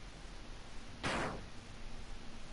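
A sharp slashing swish sounds once.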